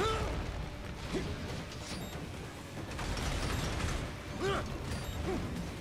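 Metal blades clash and slash with a ringing sound.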